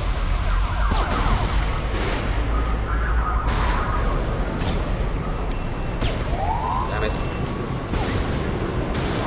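A sniper rifle fires sharp single shots.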